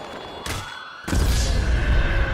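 A body slams hard into the ground.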